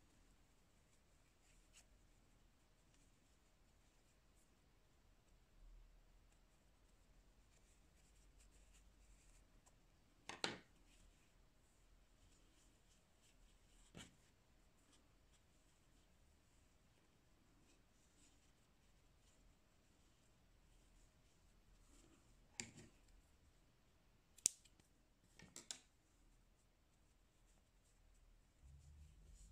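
Yarn rustles softly as it is pulled through crochet stitches.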